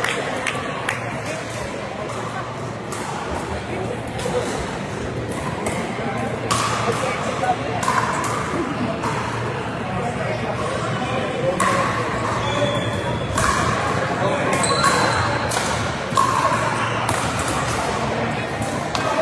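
Paddles hit plastic balls with sharp pops, echoing in a large hall.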